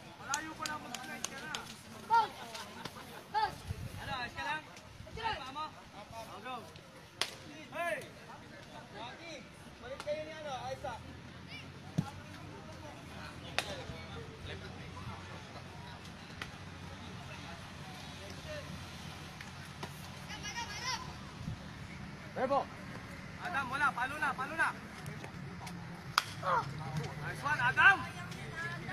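Children shout and cheer outdoors.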